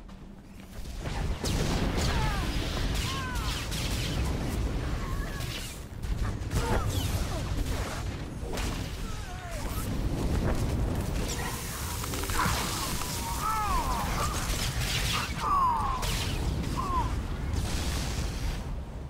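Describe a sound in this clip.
Laser swords clash and hum in a fight.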